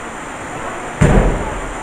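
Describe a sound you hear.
A wrestler slams heavily onto a ring mat with a loud, booming thud.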